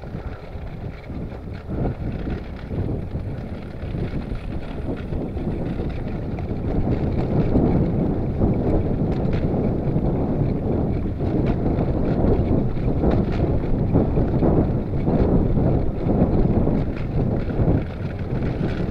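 Wind buffets past outdoors, growing stronger.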